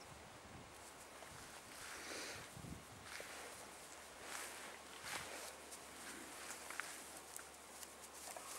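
Grass rustles under paws.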